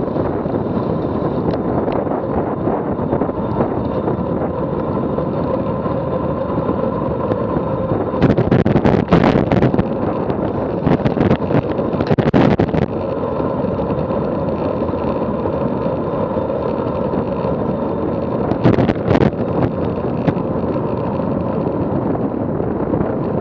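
Wind roars steadily past a fast-moving rider, with gusts buffeting louder now and then.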